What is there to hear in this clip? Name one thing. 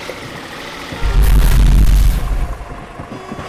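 A car crashes into a truck with a loud, booming thud.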